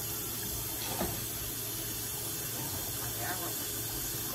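A metal pan clinks against a stove.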